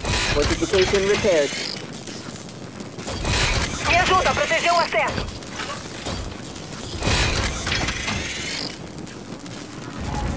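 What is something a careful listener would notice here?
Gunfire rattles in short bursts.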